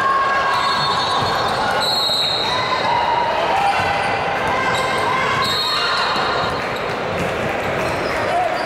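Young female players call out to each other.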